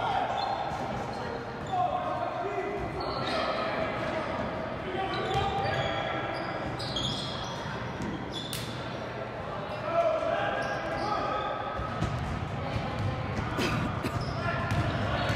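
Players and spectators call out in a large echoing gym.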